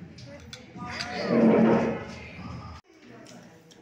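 Porcelain cups clink together in a toast.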